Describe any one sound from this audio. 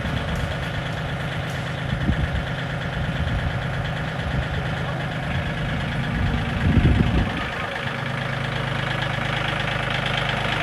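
A small tractor engine idles with a steady rumble.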